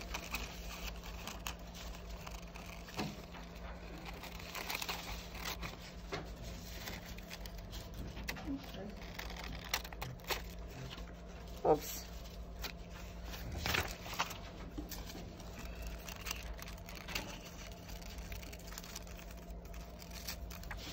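Scissors snip and crunch through paper.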